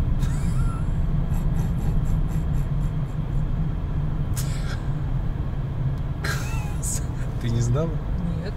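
A car engine hums steadily with road rumble inside the cabin.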